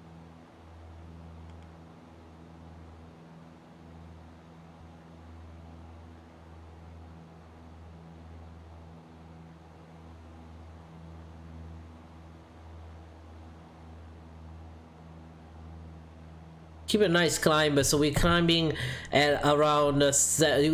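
A small plane's engine drones steadily.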